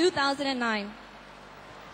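A young woman cries out with excitement close by.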